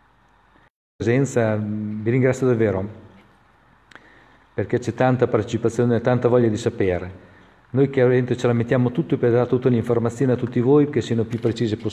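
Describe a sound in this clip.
An elderly man speaks calmly and clearly into a close microphone.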